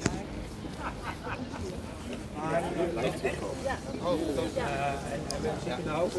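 Adults chat casually nearby outdoors.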